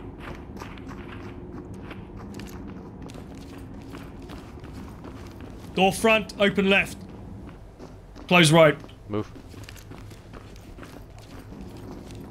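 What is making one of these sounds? Footsteps tread on stairs and a hard floor.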